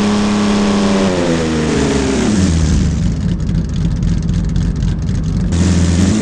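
A simulated SUV engine hums, its pitch dropping and then rising again.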